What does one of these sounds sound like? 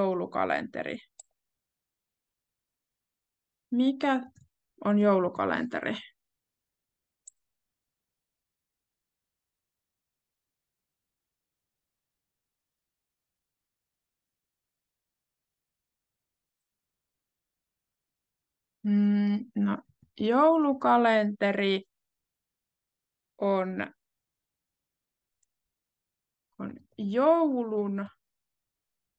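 A young woman speaks calmly through an online call, with long pauses.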